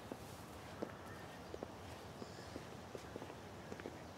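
Footsteps tread on a path.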